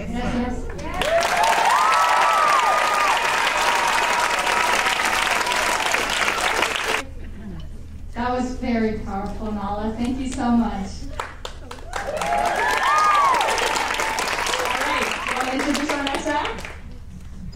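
An audience claps and cheers loudly in a large hall.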